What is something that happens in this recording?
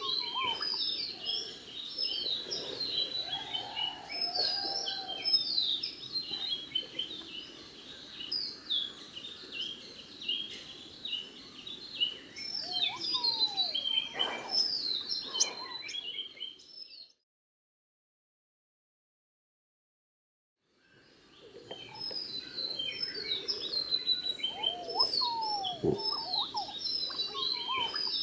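Many birds chirp and twitter busily in the trees.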